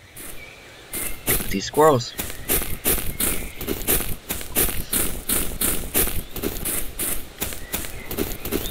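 Footsteps crunch quickly and steadily over the ground.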